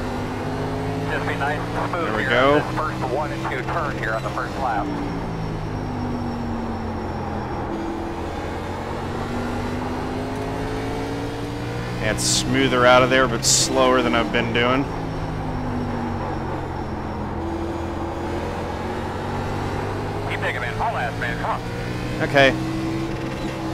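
A race car engine drones steadily, its pitch rising and falling through the gears.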